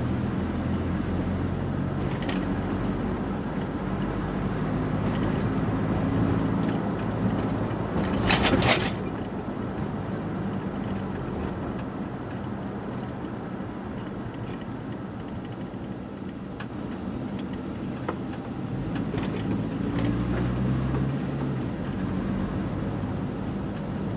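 A car engine hums steadily from inside the car as it drives along.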